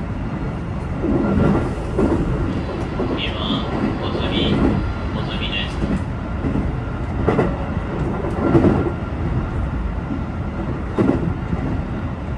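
Train wheels clatter and knock over rail joints.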